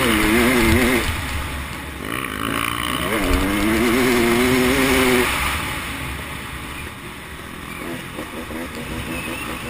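A dirt bike engine revs loudly up close, rising and falling in pitch.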